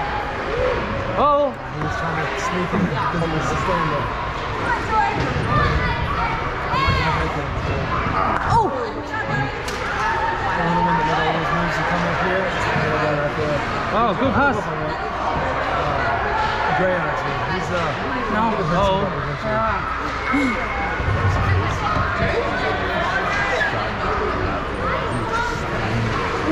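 Young children shout and call out across an echoing hall.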